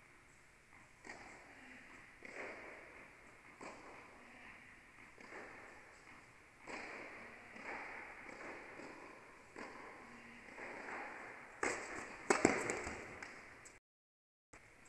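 Tennis rackets strike a ball back and forth in a large echoing hall.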